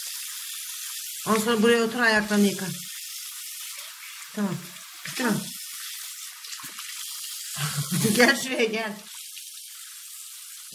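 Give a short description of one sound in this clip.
Water runs steadily from a tap into a basin.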